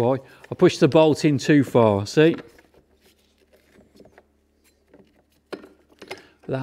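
Plastic parts click as a man turns them by hand.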